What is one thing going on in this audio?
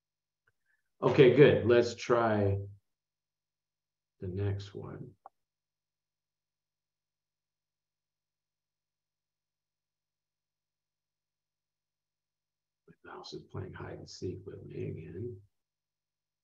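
A man speaks calmly over a microphone, in short bursts with pauses.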